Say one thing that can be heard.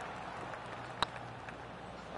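A putter taps a golf ball softly.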